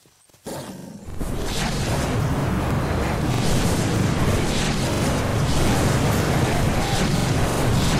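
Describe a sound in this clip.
Magic blasts roar and crackle.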